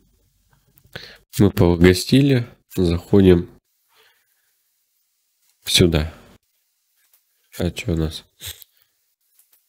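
A young man speaks calmly and close to a microphone, in short bursts.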